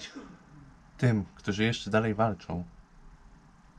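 A young man speaks briefly and calmly, close up.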